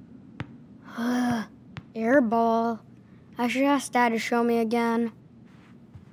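A young boy talks quietly to himself.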